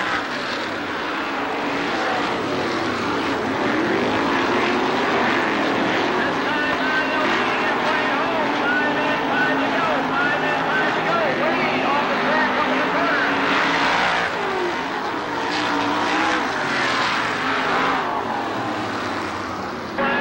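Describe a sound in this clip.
Race car engines roar loudly as cars speed around a dirt track.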